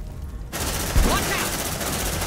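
Heavy guns fire a sudden loud burst.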